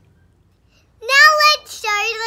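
A young girl squeals with excitement close by.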